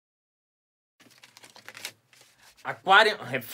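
A plastic package rustles in a man's hands.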